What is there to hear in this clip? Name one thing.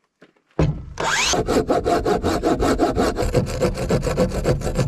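A hand saw rasps quickly back and forth through wood.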